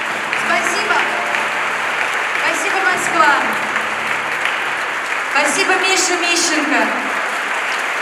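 A woman sings in a large echoing hall.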